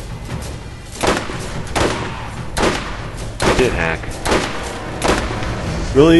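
A rifle fires loud shots one after another.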